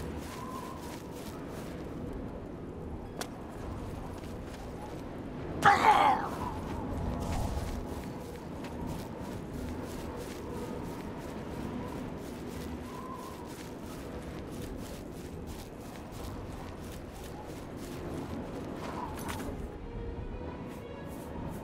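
Footsteps crunch through grass at a steady pace.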